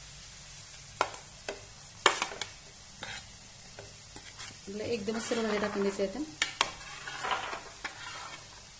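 Chopped vegetables drop and patter into a hot pan.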